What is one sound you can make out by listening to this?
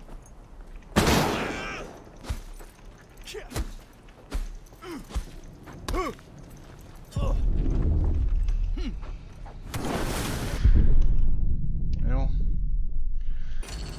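Heavy blows thud in a close fight.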